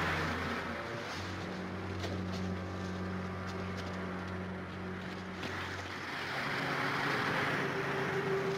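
Waves crash and surge against a boat.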